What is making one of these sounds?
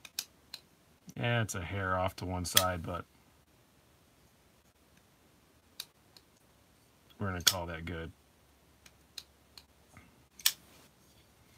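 A folding knife blade snaps open and clicks shut.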